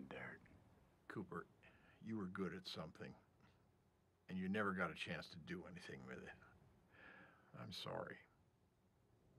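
An elderly man speaks slowly in a low, rough voice.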